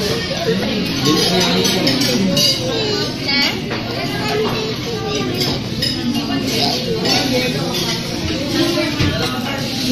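A crowd of people chatters all around.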